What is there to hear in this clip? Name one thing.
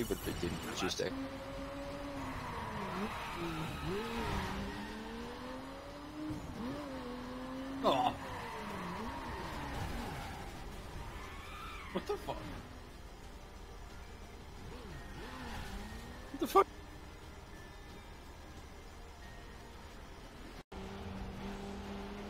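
A car engine roars and rises and falls in pitch as the car speeds up and slows down.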